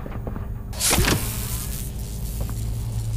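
A springy grabber shoots out with a loud whoosh.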